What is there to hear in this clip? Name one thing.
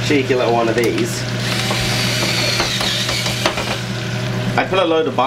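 Potatoes sizzle as they fry in hot oil.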